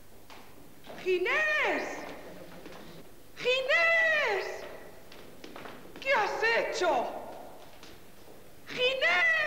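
A woman calls out loudly in high, sliding tones.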